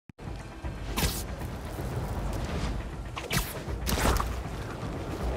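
Web lines shoot out with sharp whooshing snaps.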